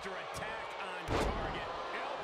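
A body slams heavily onto a wrestling mat with a loud thud.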